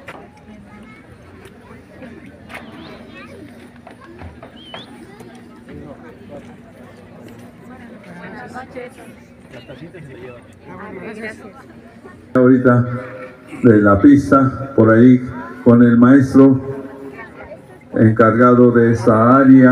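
A crowd of people chatters softly outdoors.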